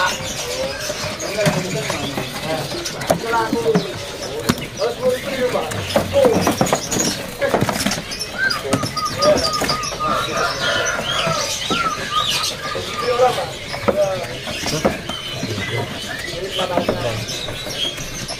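A small bird chirps and warbles in quick, varied calls.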